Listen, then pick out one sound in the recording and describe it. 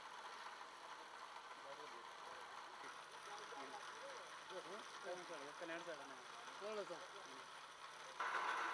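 A spinning wheel whirs steadily.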